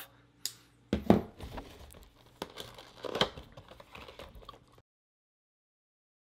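A cardboard box rubs and rustles as it is handled and opened.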